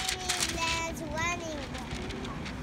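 A young girl speaks up close.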